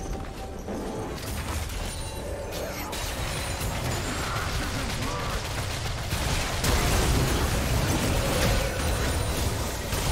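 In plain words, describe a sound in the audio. Magic spells blast and crackle in a video game fight.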